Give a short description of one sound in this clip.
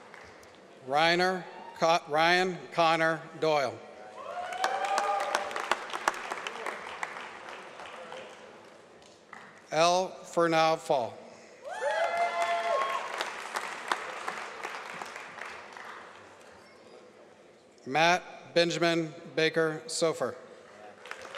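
A man reads out names through a loudspeaker in a large echoing hall.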